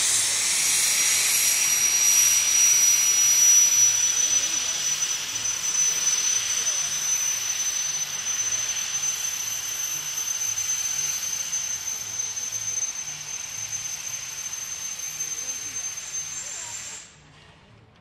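Steam locomotives chug and rumble past, slowly fading into the distance.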